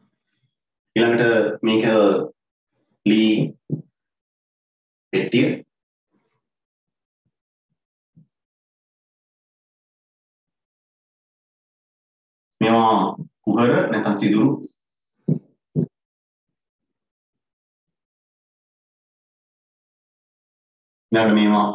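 A man speaks calmly in short bursts with long pauses.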